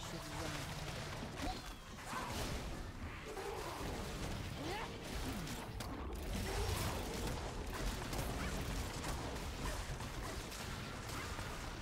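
Blows clash and thud in quick bursts.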